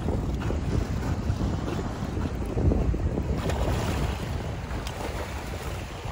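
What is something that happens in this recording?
A dog splashes as it paddles through the water close by.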